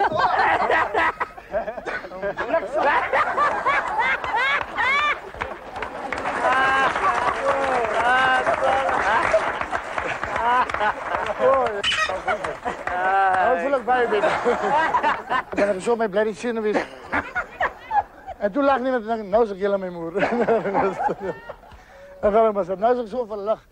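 A man laughs loudly and heartily.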